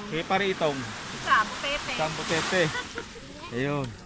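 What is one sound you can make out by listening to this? A woman talks and laughs close by.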